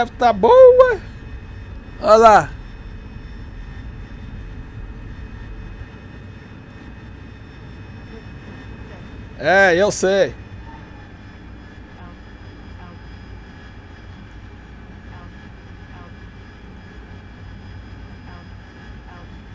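A jet engine roars steadily during takeoff.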